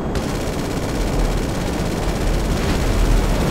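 A heavy splash bursts from the water below.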